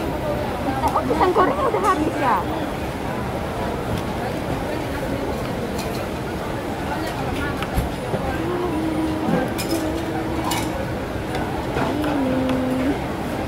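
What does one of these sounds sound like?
A woman talks animatedly nearby.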